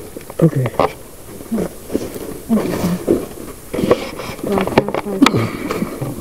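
Leaves and stems rustle as an animal brushes past close by.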